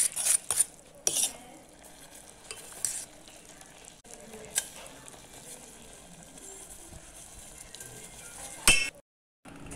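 A fork scrapes against a metal pot.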